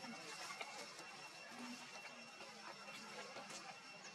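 A young monkey chews food with soft smacking sounds.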